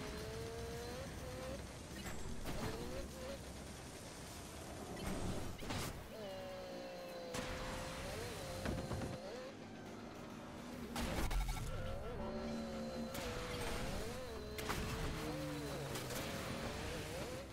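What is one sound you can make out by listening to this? A vehicle engine whines and revs up and down steadily.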